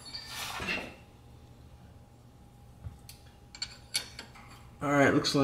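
A wrench clinks and ratchets against metal parts.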